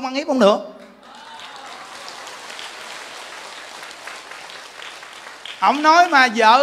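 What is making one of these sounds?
A crowd applauds.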